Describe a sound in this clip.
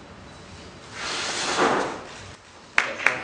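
A man blows out a long, hissing breath.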